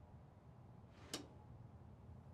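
A wooden drawer slides open with a soft thump.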